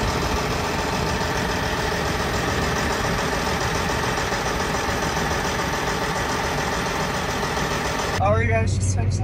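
A large engine runs with a loud, steady roar.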